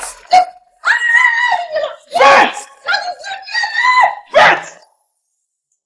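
A woman screams and cries out in distress.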